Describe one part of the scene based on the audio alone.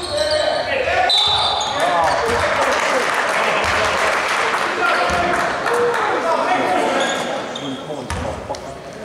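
A crowd of spectators cheers and shouts in an echoing hall.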